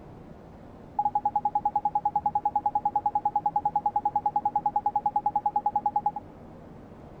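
A rapid series of short electronic beeps ticks along quickly.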